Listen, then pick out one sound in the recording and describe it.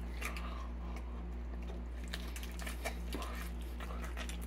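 A man chews a mouthful of pizza close by.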